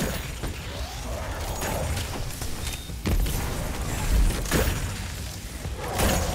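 A bow fires arrows with sharp twangs.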